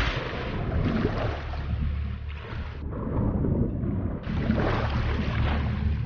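Water swishes and churns as a swimmer strokes through it.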